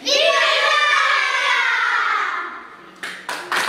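A group of children sing together loudly.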